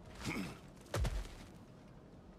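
A heavy body lands with a deep thud.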